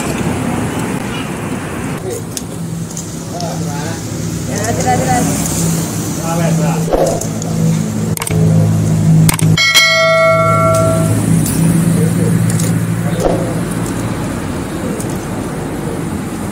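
Hot oil sizzles and crackles steadily in a deep fryer.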